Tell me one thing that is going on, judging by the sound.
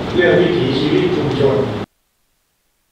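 A man speaks through a loudspeaker.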